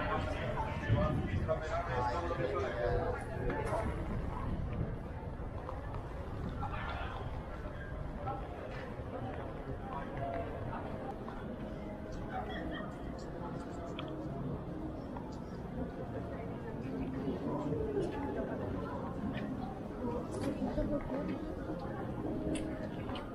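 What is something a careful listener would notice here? A crowd of people chatter at a distance outdoors.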